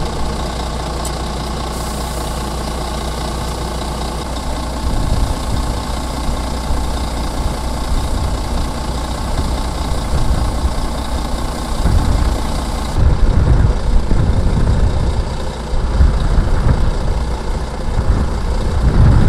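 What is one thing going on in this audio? A heavy diesel truck engine rumbles under load.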